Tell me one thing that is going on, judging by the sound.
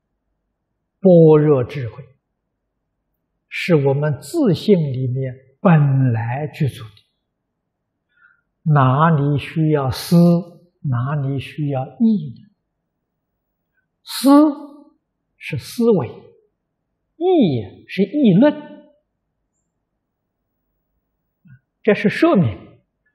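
An elderly man speaks calmly and steadily into a close microphone, with pauses between phrases.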